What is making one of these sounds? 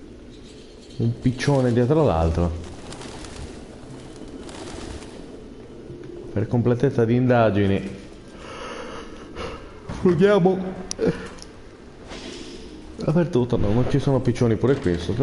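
A man talks close to a microphone in bursts, with animation.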